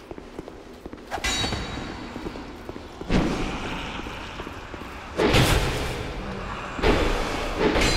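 Sword blows strike with sharp clashes.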